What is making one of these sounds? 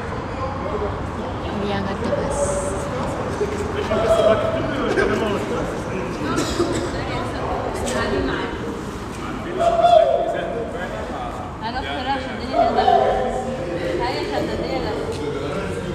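A young woman sings through a small loudspeaker, echoing off stone walls.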